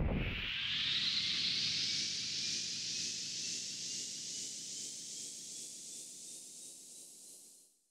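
A glowing burst of energy roars and shimmers with a rising, sparkling hiss that slowly fades.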